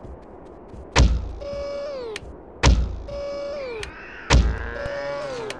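A crossbow fires with a sharp snap, three times in a row.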